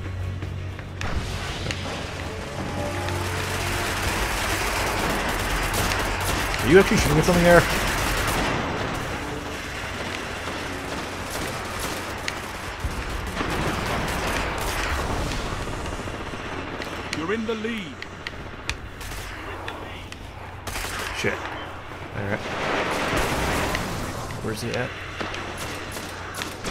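A rifle fires in rapid bursts.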